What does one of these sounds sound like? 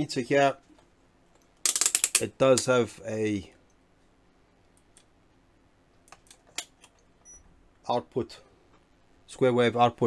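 A multimeter's rotary switch clicks as it is turned.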